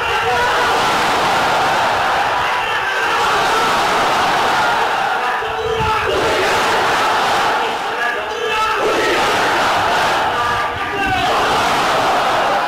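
A crowd of men shouts and chants together.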